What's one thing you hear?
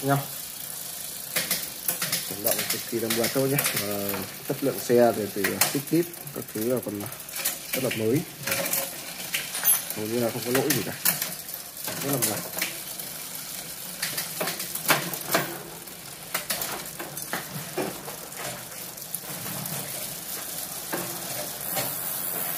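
A bicycle derailleur clicks as gears shift.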